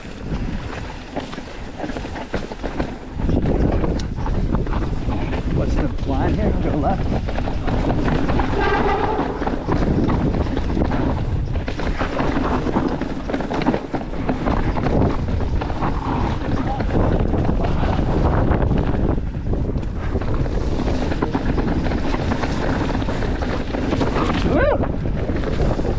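Bicycle tyres rumble and crunch over a rough dirt trail.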